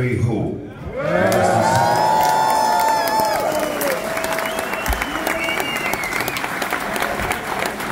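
A man sings loudly into a microphone over a loudspeaker system.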